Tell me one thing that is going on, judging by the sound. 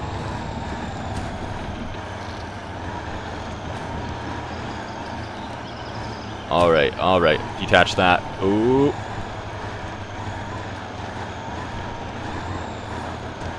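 A truck engine rumbles steadily at low revs.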